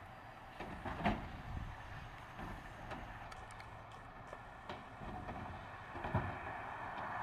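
A plastic bin bangs as it is emptied into a garbage truck.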